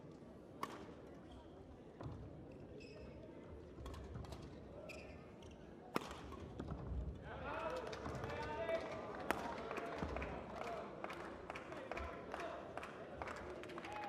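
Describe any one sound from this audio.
Badminton rackets strike a shuttlecock back and forth.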